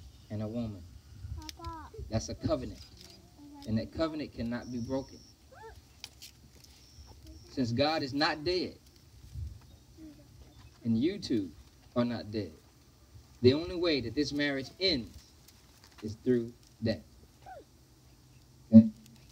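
A man speaks calmly and clearly nearby, with short pauses.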